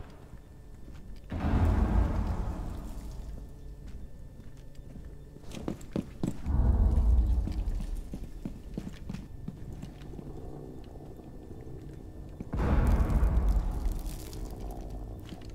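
Footsteps thud on a hard floor and stairs.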